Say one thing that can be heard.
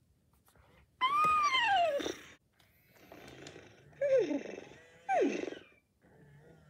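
A toy pony gives an electronic whinny.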